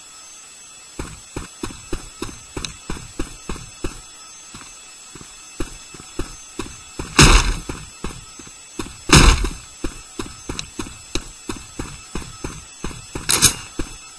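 Rapid footsteps tap on a hard floor.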